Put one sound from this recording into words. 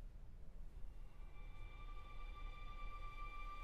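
String instruments begin a soft, sustained chord in a large hall.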